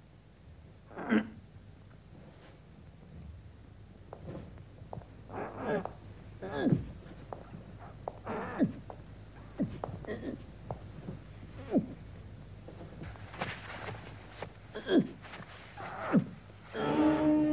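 A young woman speaks calmly in short phrases, close by.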